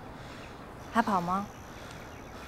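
A woman says a short word nearby.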